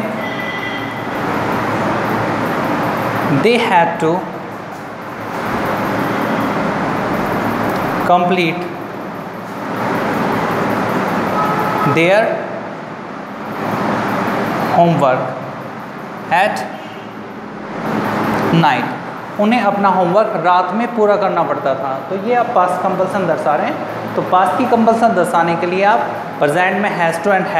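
A man speaks calmly and clearly to listeners nearby.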